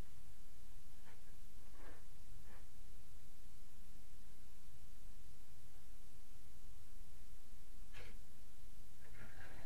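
A hand tool scrapes a plaster wall in short, scratchy strokes.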